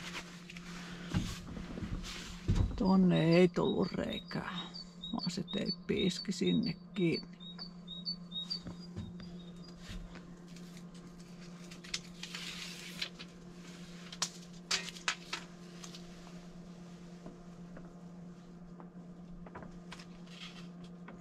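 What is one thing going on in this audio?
Foil sheeting crinkles and rustles under hands.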